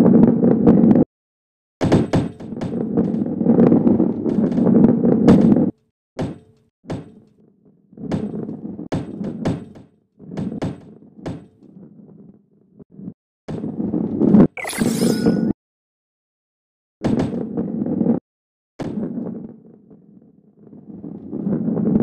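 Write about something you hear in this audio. A ball rolls and rumbles along a wooden track.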